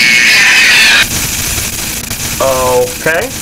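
Static hisses steadily.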